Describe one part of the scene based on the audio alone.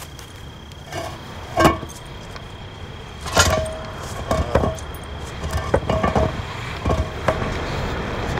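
A heavy metal manhole cover scrapes and clanks as it is dragged aside.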